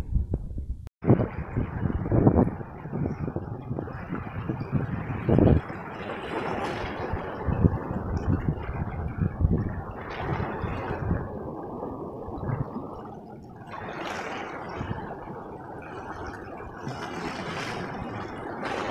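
Water rushes and foams over stones close by.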